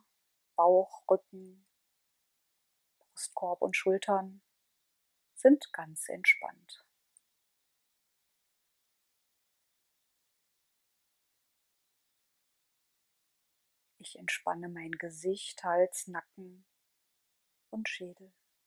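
A woman speaks calmly and softly close to a microphone, with long pauses.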